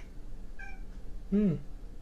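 A cat meows briefly.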